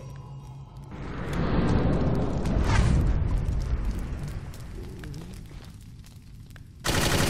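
A deep magical hum swells and rumbles.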